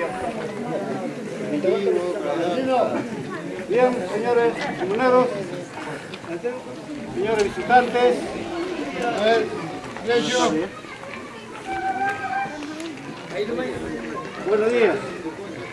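A man speaks with animation into a microphone, heard through a loudspeaker outdoors.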